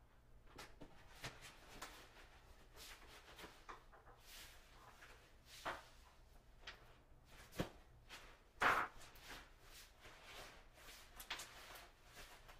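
A cardboard tube scrapes and knocks.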